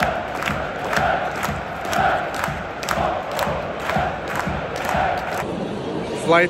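A stadium crowd claps in a steady rhythm.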